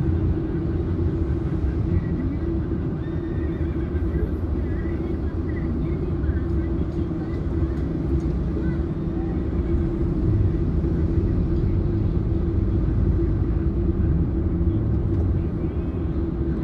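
Motorcycles and cars drone past in heavy traffic.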